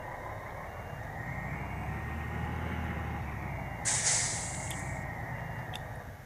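A bus engine rumbles louder as the bus pulls away and slows again.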